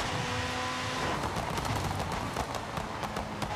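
A car engine drops in pitch as the car brakes hard.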